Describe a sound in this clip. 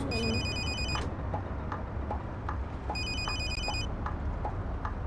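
A bus engine hums low and steady.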